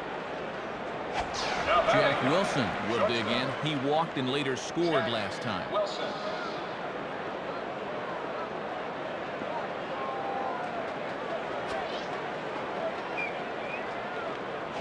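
A stadium crowd murmurs.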